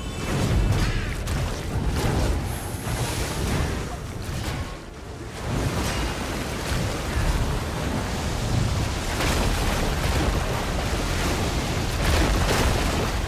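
Weapons strike and magic blasts crackle in a noisy fight.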